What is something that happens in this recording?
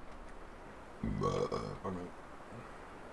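A man speaks briefly and calmly through a microphone.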